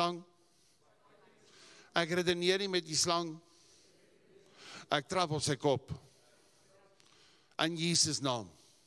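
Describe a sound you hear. An older man speaks with emphasis through a microphone, in short bursts with pauses.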